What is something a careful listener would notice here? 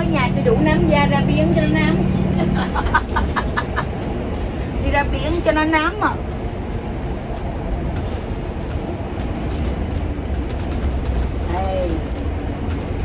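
Women talk and laugh animatedly close by.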